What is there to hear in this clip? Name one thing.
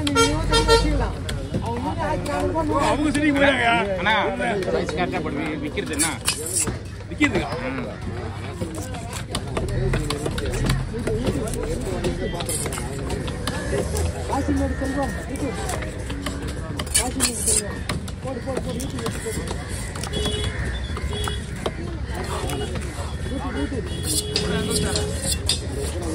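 A heavy knife chops through fish onto a wooden block with dull thuds.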